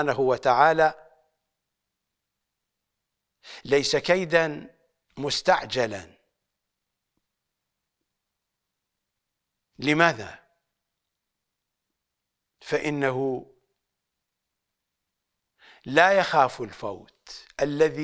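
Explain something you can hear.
An elderly man speaks with emphasis into a close microphone, in short bursts with long pauses.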